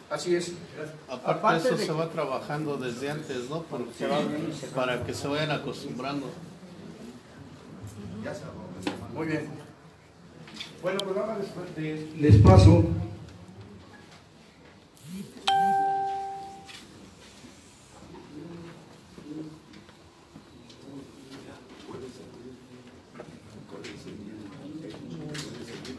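A crowd of people murmurs in the background.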